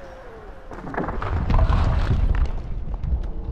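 A heavy thud sounds as a figure lands from a jump.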